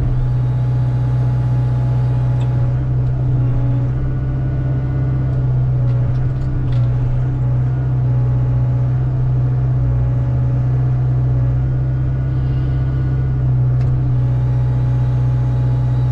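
A diesel engine of an excavator rumbles steadily up close.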